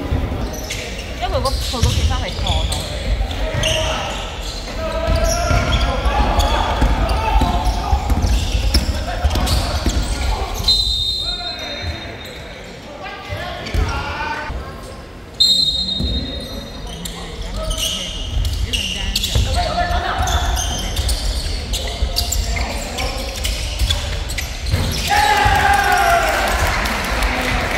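Young men call out to each other across an echoing gym.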